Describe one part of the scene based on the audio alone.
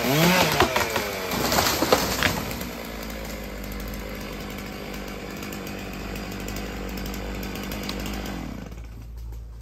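A chainsaw engine runs and revs, then cuts out.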